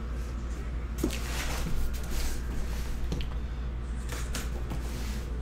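A cardboard box scrapes and thumps as it is turned over by hand.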